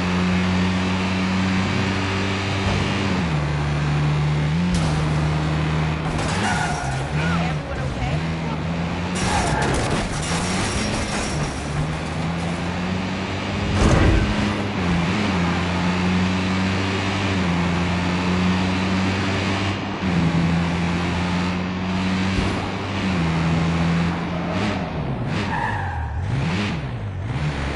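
A car engine hums steadily and changes pitch as the car speeds up and slows down.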